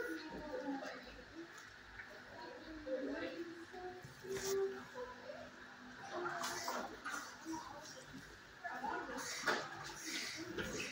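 A dog sniffs close by.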